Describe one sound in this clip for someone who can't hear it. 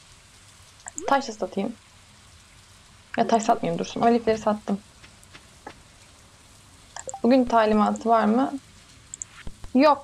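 A young woman talks calmly and close to a microphone, in short bursts.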